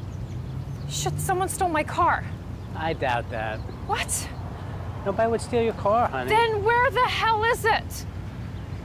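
A woman talks at a conversational pace outdoors.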